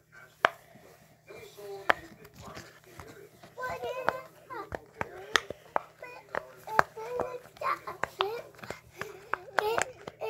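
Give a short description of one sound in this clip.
Silicone bubbles pop with sharp little clicks as fingers press them.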